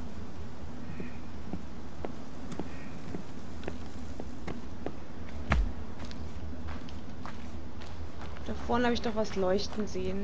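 Footsteps crunch on a dirt path outdoors.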